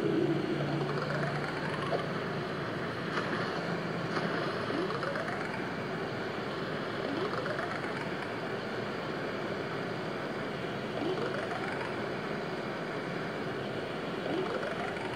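Short rising chimes ring out now and then from a phone's speaker.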